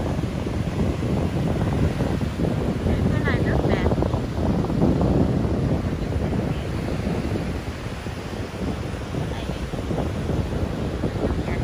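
Waves wash onto a shore nearby.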